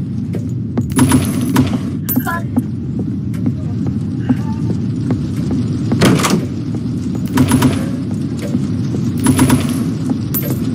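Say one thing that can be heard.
Wooden drawers slide open with knocks.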